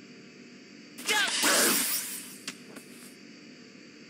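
A sudden loud burst of game sound effects rings out.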